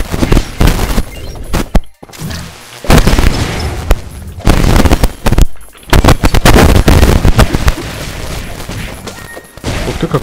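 Rapid video game gunshots crack.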